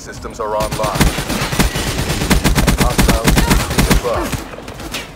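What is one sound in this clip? Automatic rifle fire rattles in a video game.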